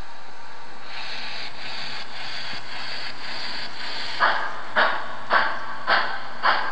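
A model steam locomotive puffs in a steady, rhythmic chuff.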